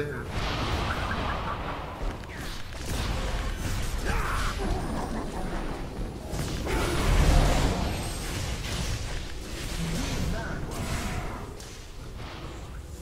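Magic spells crackle and blast in a battle.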